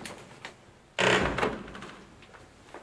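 A heavy wooden door bangs shut.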